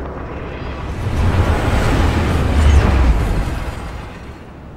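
A train rushes past with a loud roar.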